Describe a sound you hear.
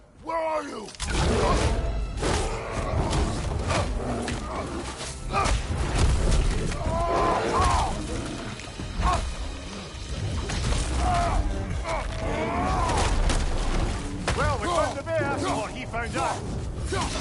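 A bear roars and growls loudly.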